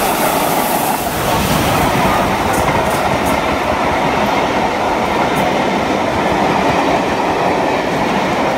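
Train carriages rumble and clatter past on the rails close by.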